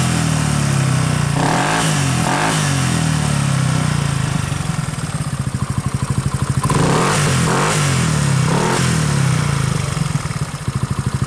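A motorcycle engine idles loudly close by, revving up now and then.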